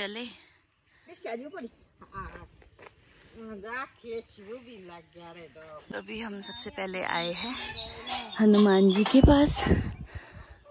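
An older woman talks with animation outdoors.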